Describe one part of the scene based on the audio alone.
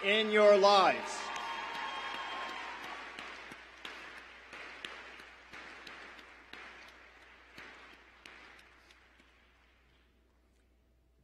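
A crowd applauds steadily, then fades away.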